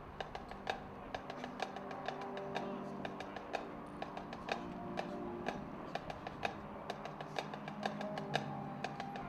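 A marching band's horns play soft sustained notes.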